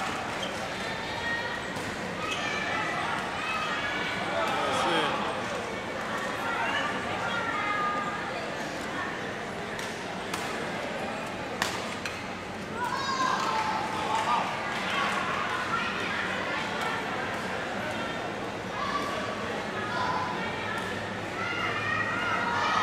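Shuttlecocks are struck with rackets in sharp taps.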